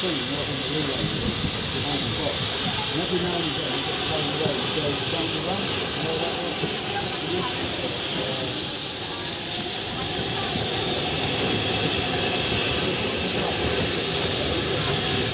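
A train rolls slowly along the rails, drawing nearer.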